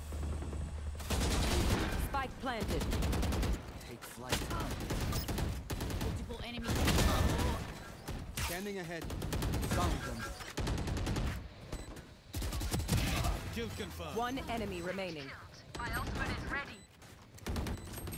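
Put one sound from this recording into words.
Gunshots from a game crackle in rapid bursts.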